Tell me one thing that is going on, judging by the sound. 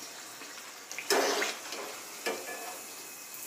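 A metal slotted spoon scrapes against a pan.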